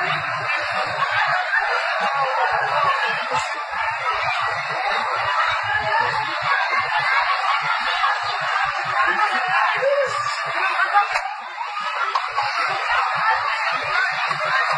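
A crowd of men shouts and yells in the distance outdoors.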